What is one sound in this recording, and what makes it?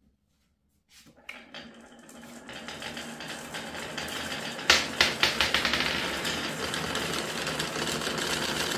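Many marbles roll along wooden tracks with a rising, rumbling clatter.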